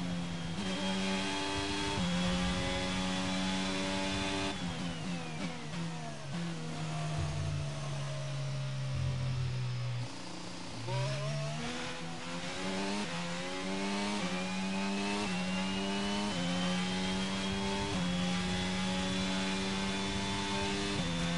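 A racing car engine screams at high revs, dropping in pitch as the car brakes and rising again as it speeds up through the gears.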